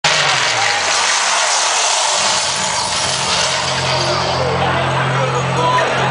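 Loud electronic dance music booms through large loudspeakers.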